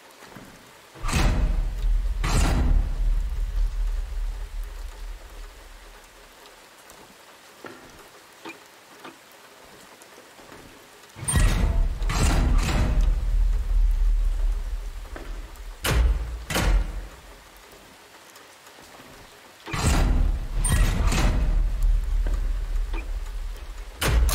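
A heavy machine rumbles in loud bursts, echoing around a large room.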